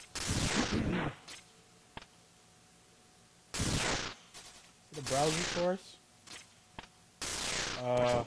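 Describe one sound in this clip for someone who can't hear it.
Retro video game sound effects whoosh and blast in quick bursts.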